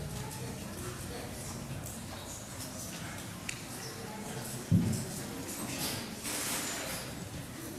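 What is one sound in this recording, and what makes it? A man speaks quietly at a distance in a large echoing hall.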